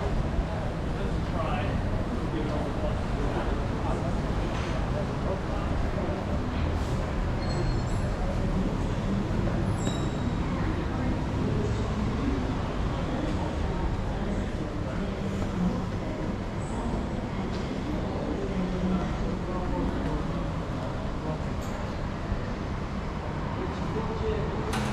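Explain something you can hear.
Footsteps climb stone stairs and walk across a hard floor.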